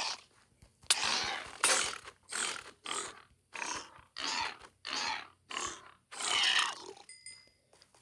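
A sword strikes a creature with repeated hits.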